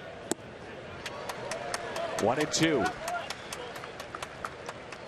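A stadium crowd claps and cheers.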